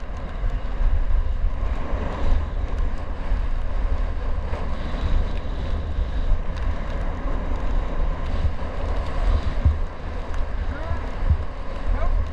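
Wind rushes and buffets loudly close by, outdoors.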